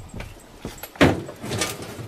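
Rubbish thuds and rattles as it is tipped into a metal bin.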